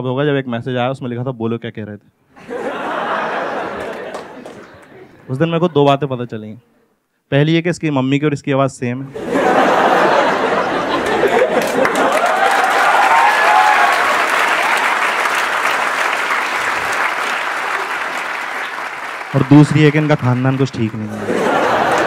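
A man speaks with animation into a microphone to an audience.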